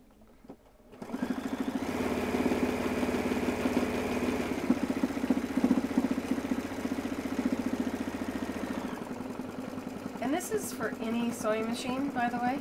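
An embroidery machine stitches with a fast, steady rattling hum.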